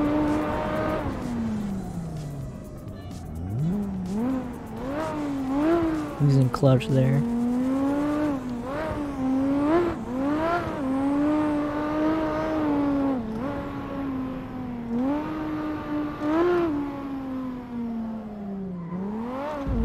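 A car engine revs hard, rising and falling as gears shift.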